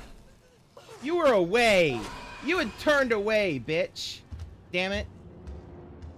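A young man screams and yells in fright close to a microphone.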